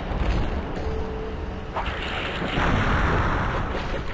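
A fiery explosion bursts with a roar.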